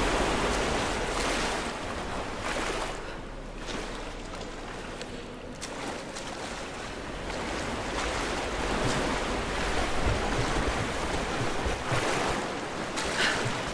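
Water splashes and sloshes as someone wades and swims through it.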